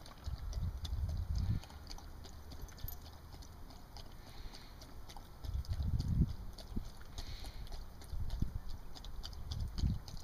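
A dog eats kibble from a bowl, crunching and clinking.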